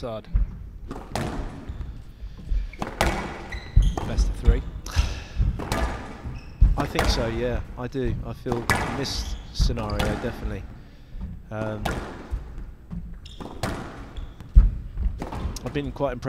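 A squash ball is struck hard and smacks against the walls with sharp echoing cracks.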